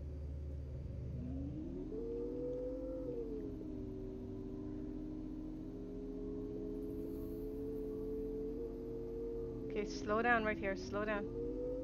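A motorcycle engine hums steadily, its pitch rising and falling as it rides.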